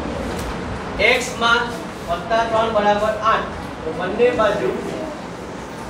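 A man speaks loudly and clearly nearby.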